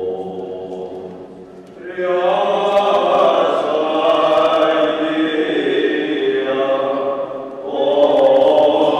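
A crowd of voices sings a slow chant in an echoing hall.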